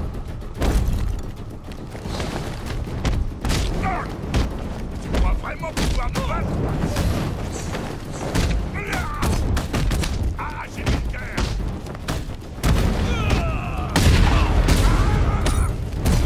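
Heavy punches and kicks thud in a fast brawl.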